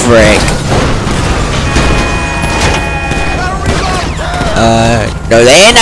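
A car crashes and tumbles over with metallic bangs.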